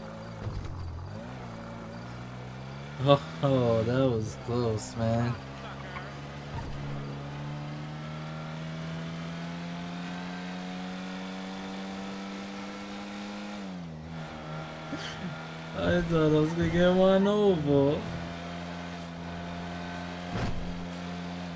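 A car engine hums steadily, rising and falling in pitch as the car speeds up and shifts gears.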